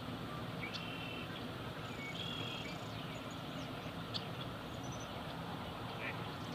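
Birds chirp and whistle in short calls outdoors.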